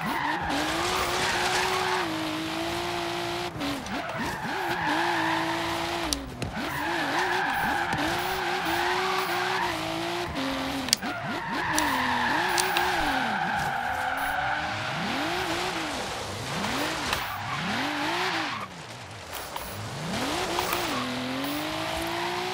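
A car engine roars and revs up and down as gears shift.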